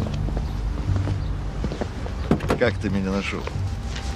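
A car door opens.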